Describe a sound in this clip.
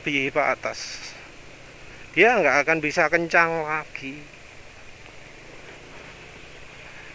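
A scooter engine hums steadily as it rides along.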